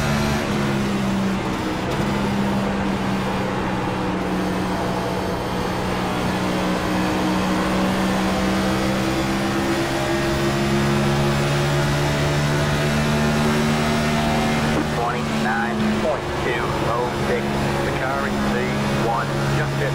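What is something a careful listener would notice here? A race car engine roars steadily at high speed, its pitch dipping and rising.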